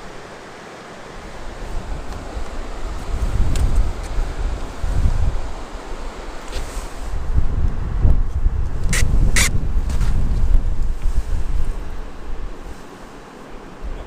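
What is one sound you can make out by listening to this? Wind gusts loudly across open water.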